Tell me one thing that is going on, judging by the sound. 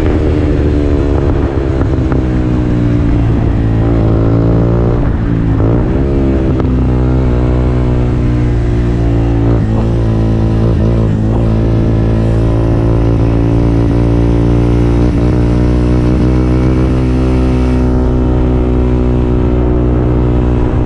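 A motorcycle engine hums steadily up close, its pitch rising and falling as the rider changes speed.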